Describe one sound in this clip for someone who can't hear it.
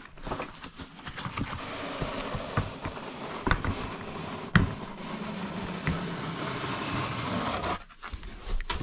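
Cardboard scrapes and rustles as a large box is handled.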